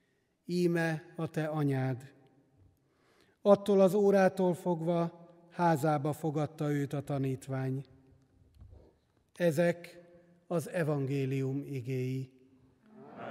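A middle-aged man chants into a microphone, heard through a loudspeaker with echo.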